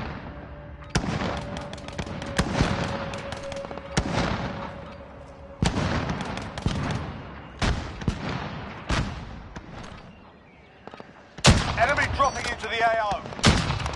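Loud rifle shots ring out and echo.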